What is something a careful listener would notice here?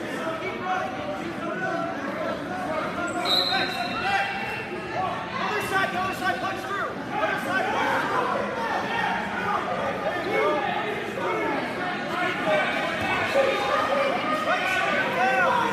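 Wrestlers thump and scuffle on a mat.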